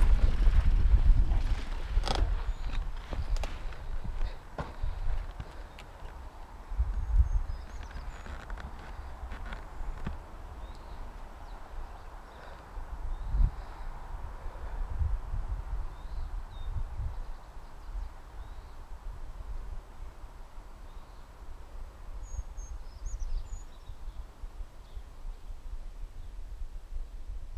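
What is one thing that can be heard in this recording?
Bicycle tyres rattle and crunch over rocky dirt.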